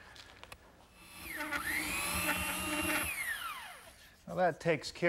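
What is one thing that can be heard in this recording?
A belt sander whirs against wood.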